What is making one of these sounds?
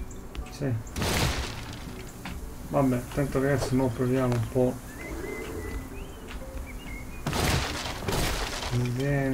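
Wooden blocks break apart with a crunching burst.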